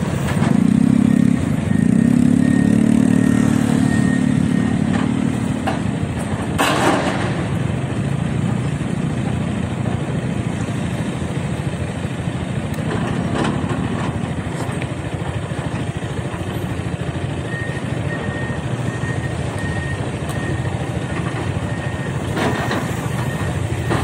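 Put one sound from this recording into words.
Excavator engines rumble steadily nearby.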